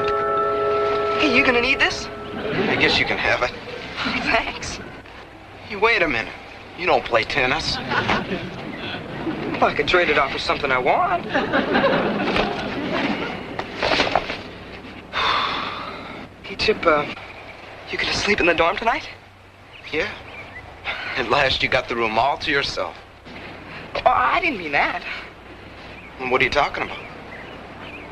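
A teenage boy speaks casually up close.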